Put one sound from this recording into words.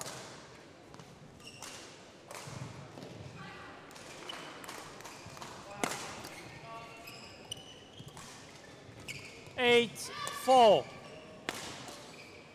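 A shuttlecock is struck sharply with a racket, echoing in a large hall.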